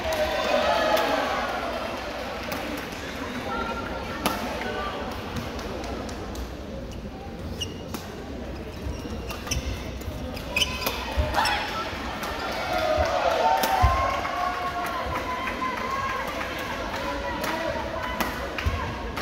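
Men and women chat and call out in a large echoing hall.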